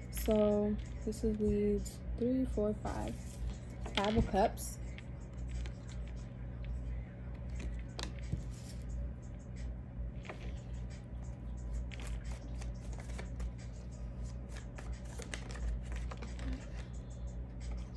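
Playing cards riffle and slap softly as they are shuffled by hand.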